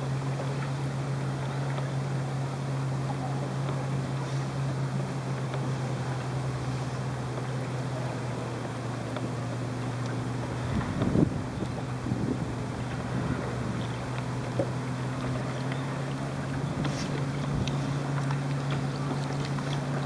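A boat's motor hums steadily close by.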